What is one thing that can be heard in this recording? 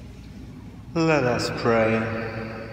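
A man chants into a microphone in a large echoing hall.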